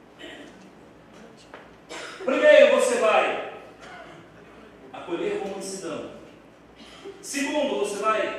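A middle-aged man speaks with animation through a microphone and loudspeakers in an echoing room.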